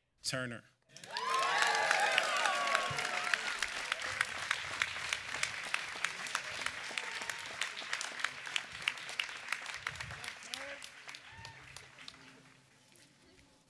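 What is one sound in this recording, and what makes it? A crowd applauds loudly and then the clapping slowly fades.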